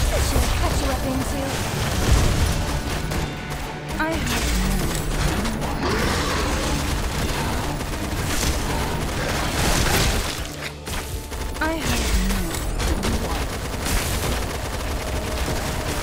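Guns fire rapidly in a game battle.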